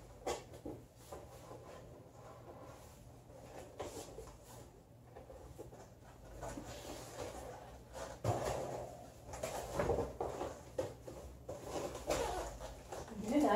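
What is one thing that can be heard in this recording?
A cardboard box knocks against a surface.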